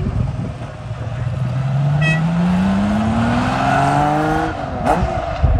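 A sports car's engine rises steadily in pitch as the car speeds off into the distance.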